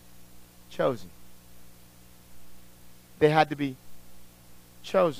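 A man speaks in short bursts through a microphone, in a small echoing room.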